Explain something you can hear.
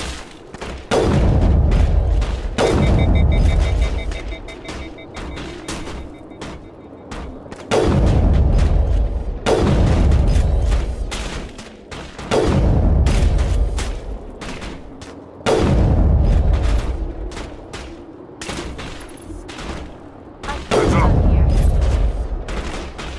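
A rifle fires loud, booming shots every few seconds, each rumbling away slowly.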